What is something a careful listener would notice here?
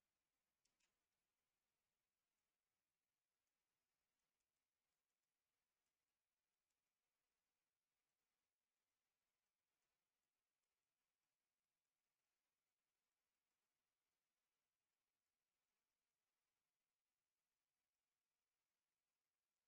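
A stylus taps and scratches softly on a tablet.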